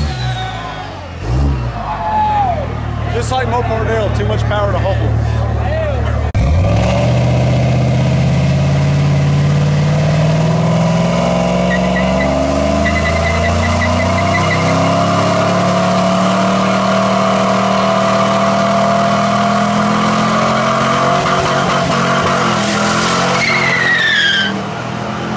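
A car engine roars loudly at high revs.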